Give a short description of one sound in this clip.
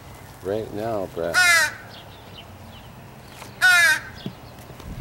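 Crows caw loudly and harshly nearby.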